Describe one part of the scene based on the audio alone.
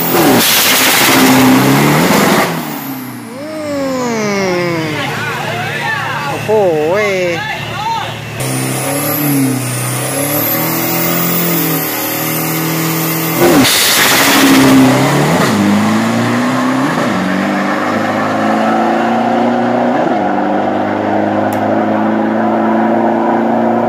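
A pickup truck's engine roars at full throttle and speeds away.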